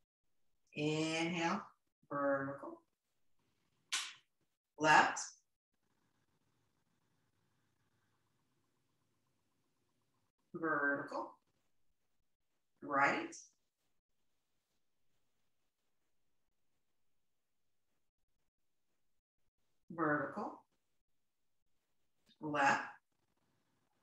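A woman speaks calmly in short phrases close by.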